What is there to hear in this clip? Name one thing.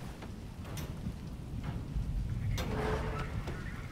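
A metal hatch creaks open.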